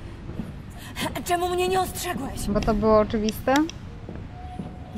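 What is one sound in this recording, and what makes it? A young woman shouts angrily.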